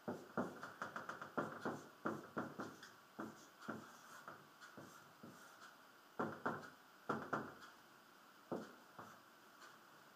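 A marker squeaks and taps against a whiteboard in short strokes.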